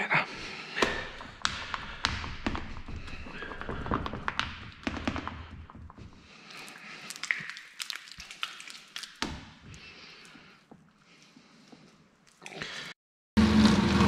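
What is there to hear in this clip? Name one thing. Hands squelch and pat soft meat paste into metal tins.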